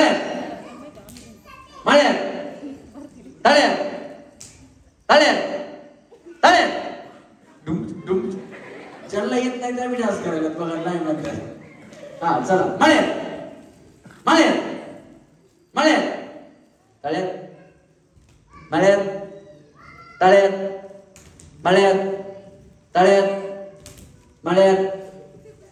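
A man calls out loudly through a microphone and loudspeakers.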